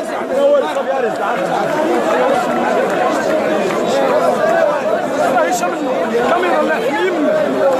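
A young man argues loudly up close.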